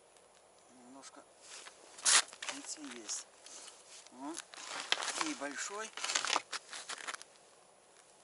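A man talks calmly close by, outdoors in the open.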